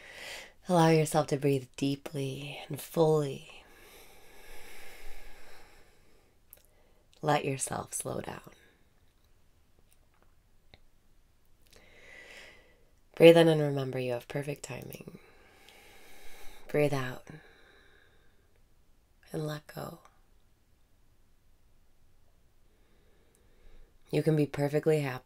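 A young woman speaks softly and cheerfully, close to a microphone, in short bursts with pauses.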